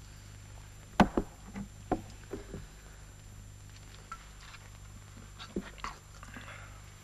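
Dishes and cutlery clink softly.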